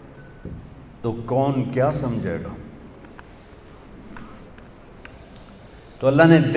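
An elderly man speaks with feeling into a microphone, with pauses.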